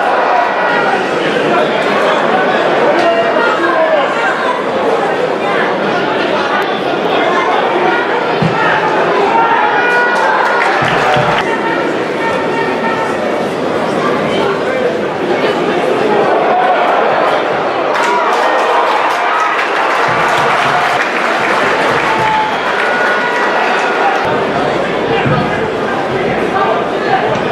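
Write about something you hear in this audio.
A large crowd chants and cheers loudly in an open-air stadium.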